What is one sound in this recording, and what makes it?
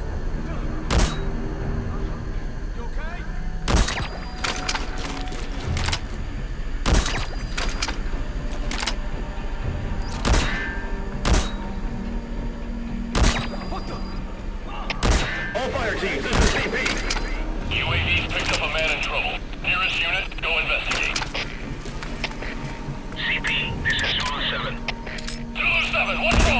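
Suppressed rifle shots fire sharply, one at a time, with pauses between them.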